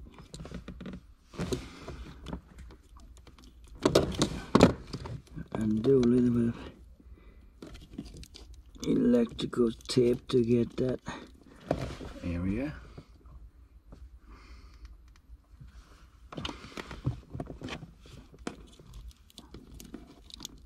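Plastic connectors click and rattle as hands fit them together.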